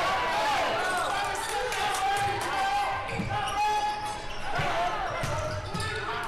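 Sneakers squeak sharply on a hardwood floor in a large echoing gym.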